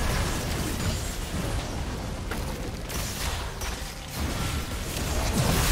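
Fiery blasts roar and whoosh.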